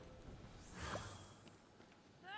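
A magical shimmer whooshes and sparkles.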